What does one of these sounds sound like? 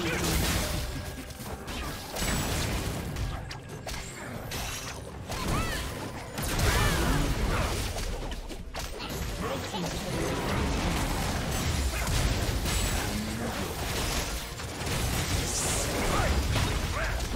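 Weapons clash and strike repeatedly.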